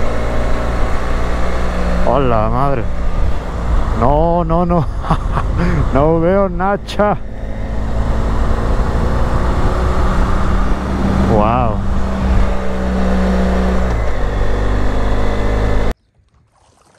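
A motorcycle engine roars steadily.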